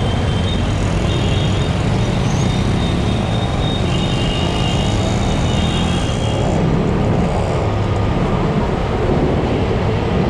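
Wind buffets loudly across the microphone.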